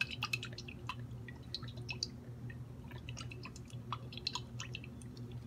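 Oil pours from a bottle into a metal pot.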